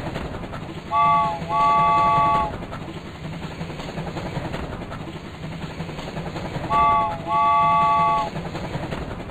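A cartoon train whistle toots twice, then again a few seconds later.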